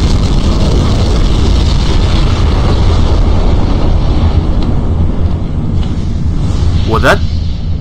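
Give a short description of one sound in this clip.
A loud explosion booms and rumbles, then slowly dies away.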